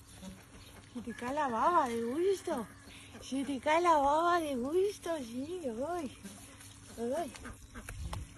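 A young woman speaks softly in a sing-song voice close by.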